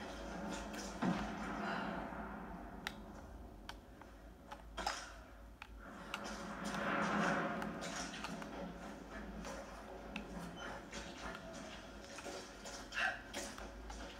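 A television plays a video game's sounds and effects nearby.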